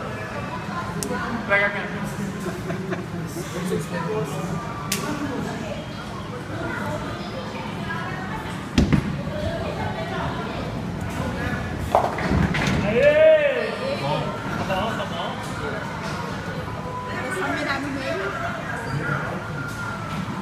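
Bowling balls knock together in a rack.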